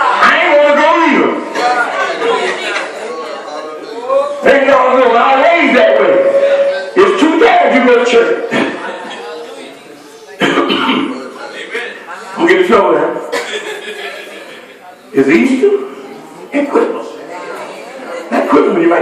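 A man preaches with animation into a microphone, heard through loudspeakers in an echoing room.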